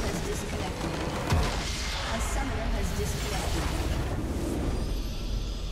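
A video game structure shatters with a loud burst.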